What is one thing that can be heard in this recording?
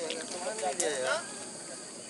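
Men talk casually outdoors nearby.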